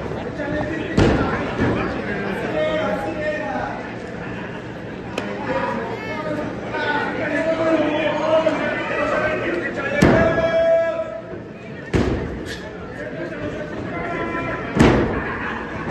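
Bodies slam hard onto a wrestling ring's canvas.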